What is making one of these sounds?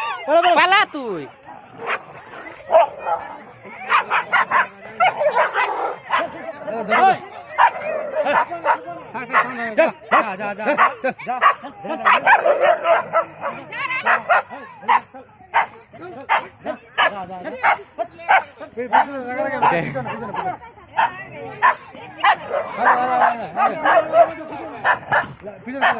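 Several men and women shout and talk excitedly close by, outdoors.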